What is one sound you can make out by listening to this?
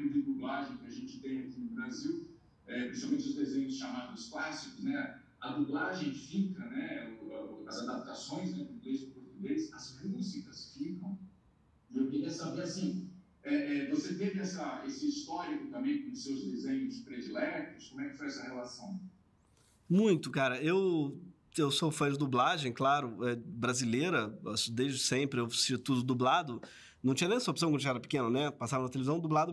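A man talks calmly into a nearby microphone, with short pauses.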